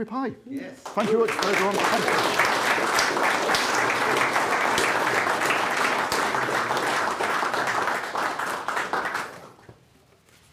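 An audience claps and cheers loudly in a room.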